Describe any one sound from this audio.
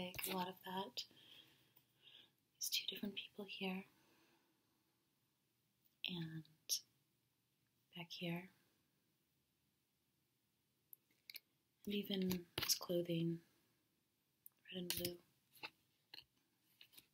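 A woman speaks softly and calmly close by.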